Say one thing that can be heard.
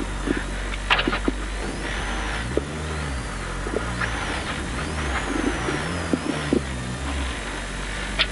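A car engine rumbles at idle.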